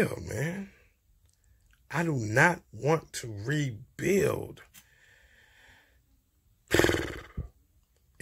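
A young man speaks casually and close to the microphone.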